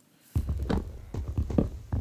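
Wood is chopped with quick hollow knocks.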